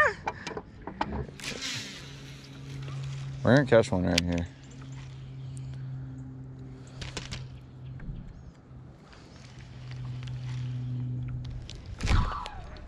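A fishing reel whirs steadily as line is wound in.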